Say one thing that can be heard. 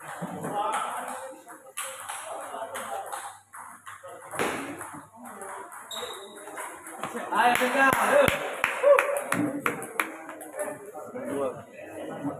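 Young men talk and call out around the table.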